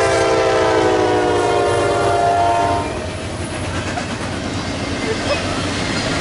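Freight cars rattle and clank along the rails.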